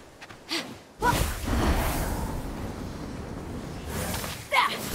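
Wind rushes past during a glide through the air.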